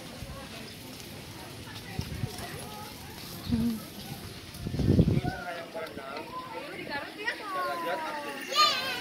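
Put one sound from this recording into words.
A toddler's footsteps patter on a stone path.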